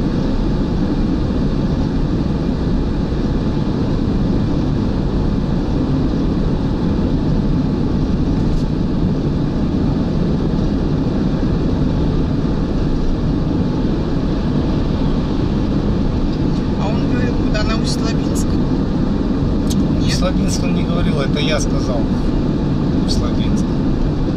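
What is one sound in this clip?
A car engine hums steadily with loud road and wind roar.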